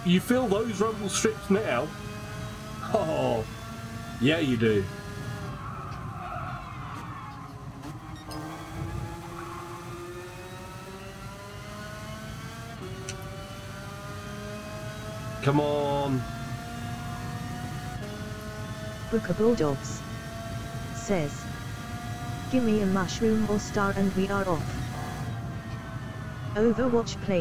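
A kart engine drones steadily, its pitch rising and falling with speed.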